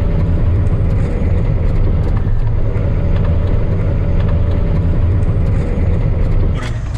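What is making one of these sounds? A heavy vehicle's engine rumbles loudly and steadily from inside the cab.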